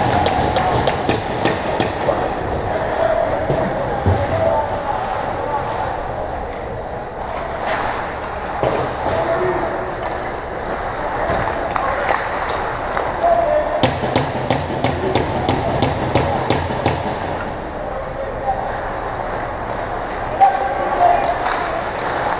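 Skates scrape and carve across the ice in a large echoing rink.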